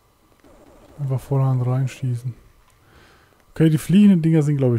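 A monster lets out loud, deep growling roars.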